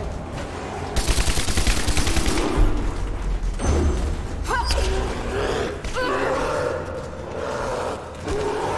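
A bear roars and growls loudly.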